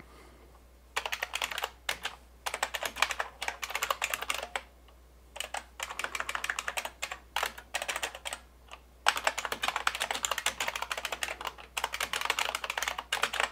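Keys clatter quickly on a small keyboard in bursts of typing.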